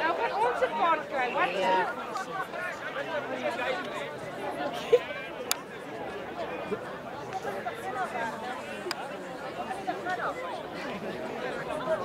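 Young players shout and call out to each other outdoors on a field.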